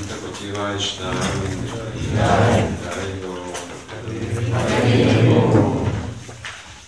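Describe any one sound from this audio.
An elderly man speaks calmly and steadily, as if reading out.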